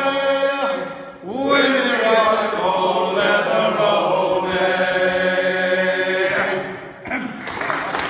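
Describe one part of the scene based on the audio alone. A choir of older men sings together in harmony, echoing in a large hall.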